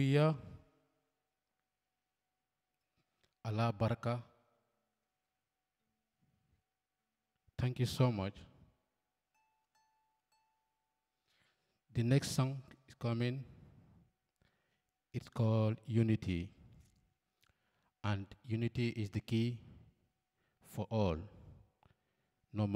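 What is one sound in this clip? A harp is plucked.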